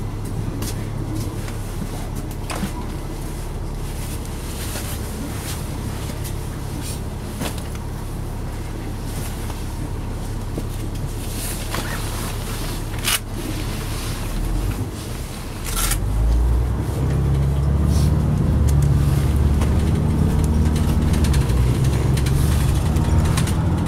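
Small rattles and clicks sound inside the bus.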